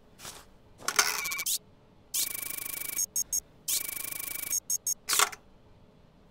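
An electronic tone beeps in quick repeated bursts.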